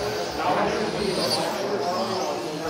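A model car zips past close by.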